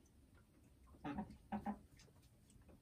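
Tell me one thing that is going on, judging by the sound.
A hen clucks softly up close.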